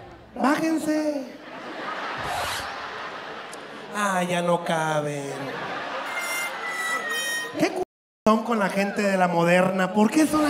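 A man sings loudly into a microphone over loudspeakers in a large echoing hall.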